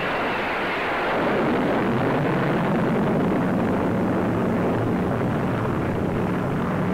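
A jet aircraft roars steadily overhead.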